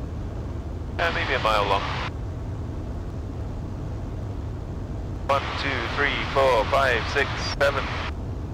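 A man speaks over a radio headset.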